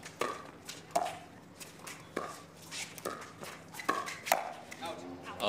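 Paddles pop sharply against a plastic ball in a quick rally.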